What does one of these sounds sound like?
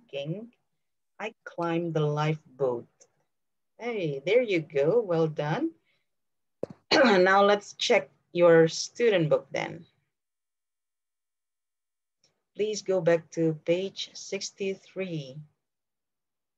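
A woman speaks clearly over an online call, explaining.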